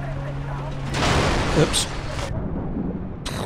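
A vehicle crashes and splashes into water.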